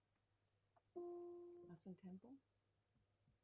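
A saxophone plays a short held note.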